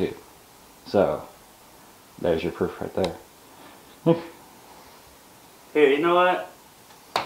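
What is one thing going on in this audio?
A young man speaks casually in short bursts, close by.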